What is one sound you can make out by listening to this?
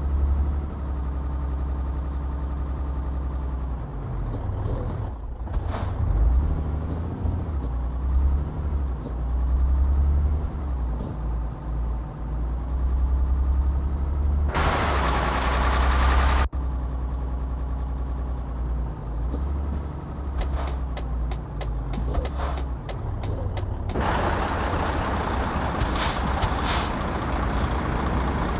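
A truck engine hums low and steady, rising and falling in pitch as it drives.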